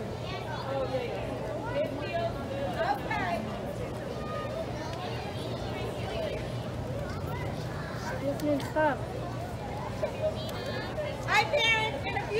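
Children shout and squeal nearby.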